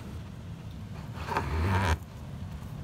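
A metal probe scrapes and crinkles against foil duct wrap.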